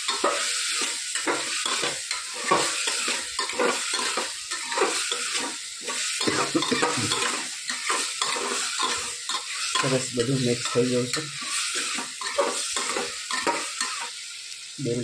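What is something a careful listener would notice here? A metal spoon scrapes and stirs food in a metal pot.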